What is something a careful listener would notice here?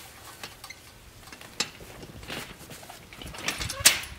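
A garden cart rattles as it rolls over grass.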